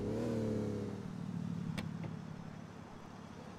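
A car engine idles and then winds down.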